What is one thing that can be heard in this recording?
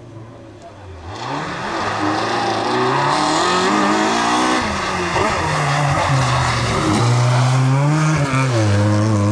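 A rally car engine roars loudly close by, revving up and down.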